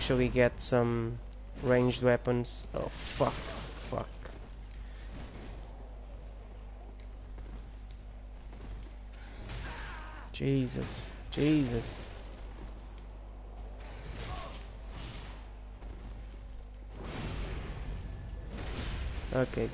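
Metal swords clash and ring in a fight.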